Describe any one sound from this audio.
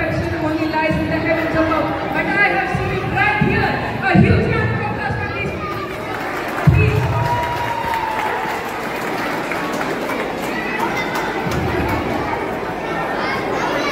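A young man speaks into a microphone over a loudspeaker in a large hall.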